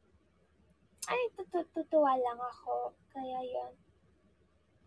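A young woman speaks close to a phone microphone with animation.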